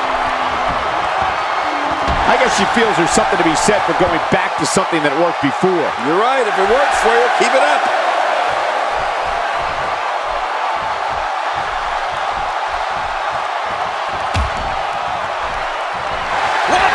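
A large crowd roars and cheers steadily in a big echoing hall.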